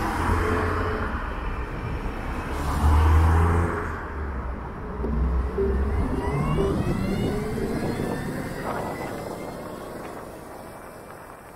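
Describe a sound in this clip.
A motorcycle engine rumbles and revs up close, then quiets down.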